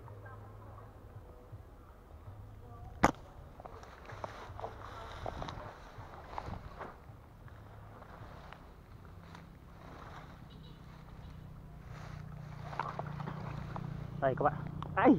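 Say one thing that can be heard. Footsteps crunch and rustle through dry grass.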